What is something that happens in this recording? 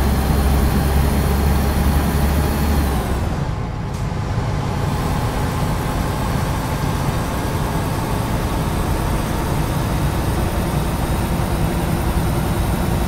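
Tyres roll along the road.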